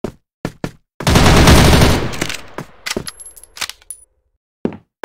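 A rifle fires a rapid, loud burst that echoes and fades.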